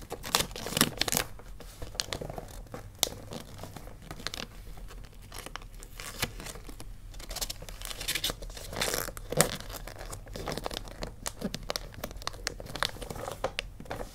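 Wrapping paper crinkles and rustles under fingers.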